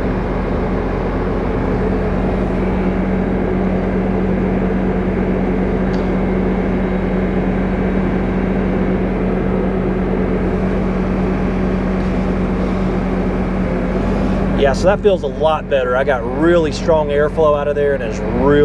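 An engine idles with a steady low rumble close by.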